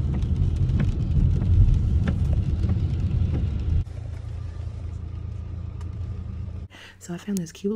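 Rain pelts a car windshield.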